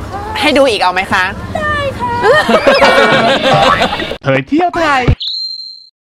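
Young women laugh loudly close by.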